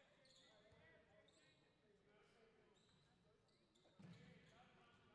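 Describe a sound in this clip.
A basketball bounces on the hardwood floor.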